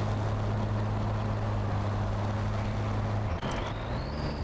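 A truck engine hums steadily, then stops.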